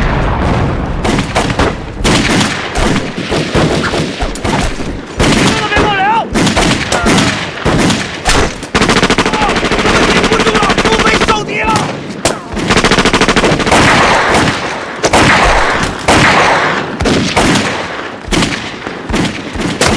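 Pistols fire in rapid bursts of sharp shots.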